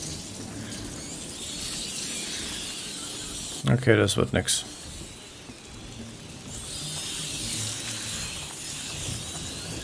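A magical spell hums and shimmers with a bright hiss.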